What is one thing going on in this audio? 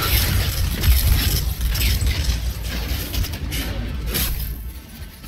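Rapid gunfire crackles and bangs.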